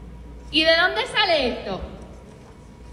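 A woman speaks loudly and with emotion into a nearby microphone.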